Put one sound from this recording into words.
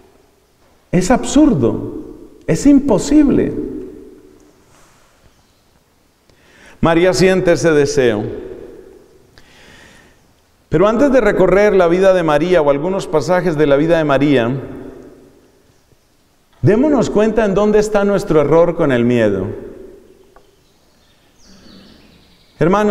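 A man chants in a steady sung voice through a microphone, in phrases with pauses between, echoing in the room.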